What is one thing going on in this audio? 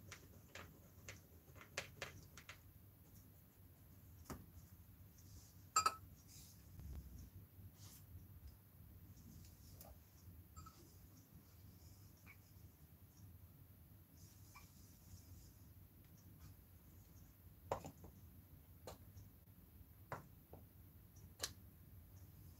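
Small glass jars and brushes clink and tap on a table now and then.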